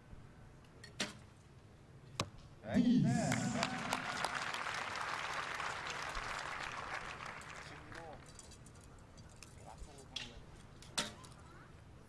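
A bowstring snaps sharply as an arrow is released.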